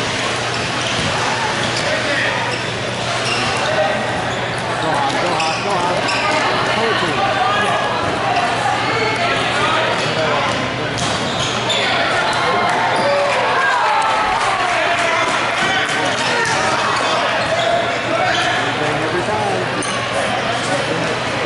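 Young players and spectators shout and call out in a large echoing hall.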